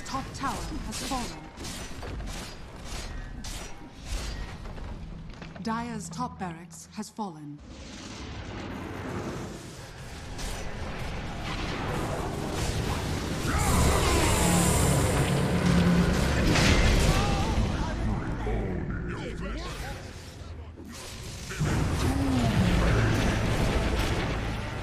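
Magic blasts, zaps and hits crackle and boom in a fast game battle.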